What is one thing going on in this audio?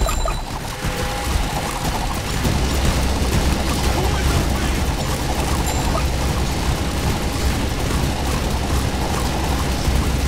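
Rapid laser shots and blasts crackle in a dense, steady barrage.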